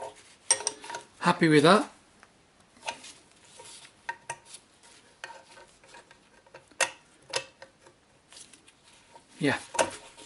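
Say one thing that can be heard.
Metal wrenches clink and scrape against a metal plate.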